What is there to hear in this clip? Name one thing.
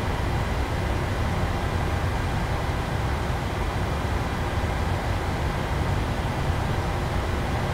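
Jet engines hum steadily as an airliner taxis.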